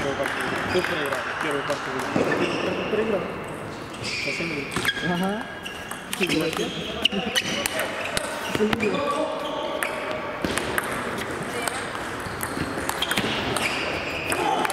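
A table tennis ball clicks sharply against paddles and the table in a rally.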